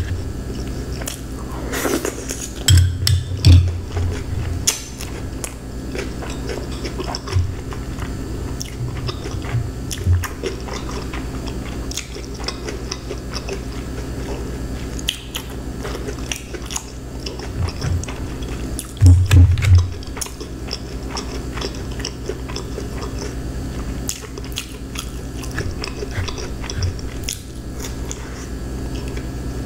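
A woman chews food close to a microphone with wet, crunchy mouth sounds.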